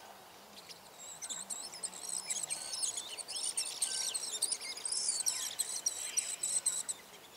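Kingfishers chatter with high, shrill calls.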